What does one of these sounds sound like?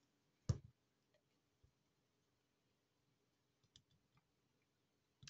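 Paper rustles and taps softly as hands handle it.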